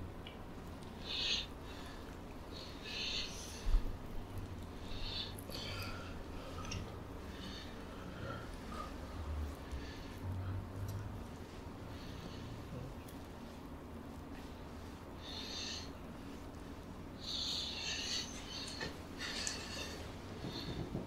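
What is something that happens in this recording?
Hands rub and slap on oiled skin in soft, wet bursts.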